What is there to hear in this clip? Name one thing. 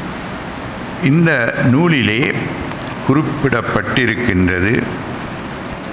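An elderly man chants slowly through a microphone.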